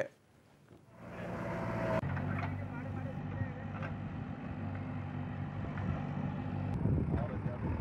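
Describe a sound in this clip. A digger's engine rumbles steadily.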